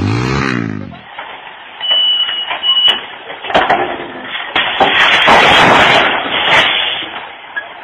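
A truck engine rumbles.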